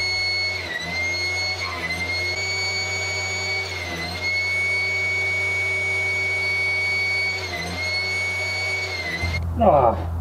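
A table saw whines steadily.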